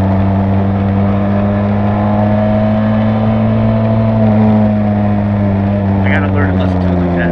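A motorcycle engine hums steadily at a low, even pitch.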